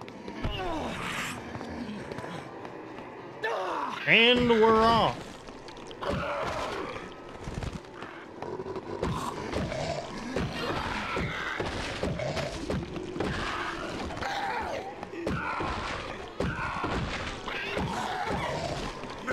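Heavy blows thud repeatedly as a weapon strikes bodies.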